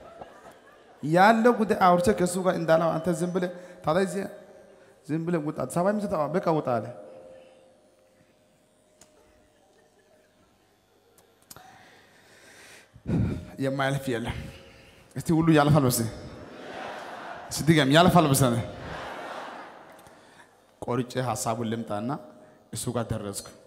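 A man speaks with animation through a microphone, echoing in a large hall.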